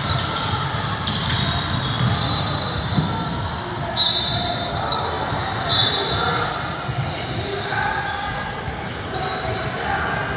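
Young men call out to each other across an echoing gym.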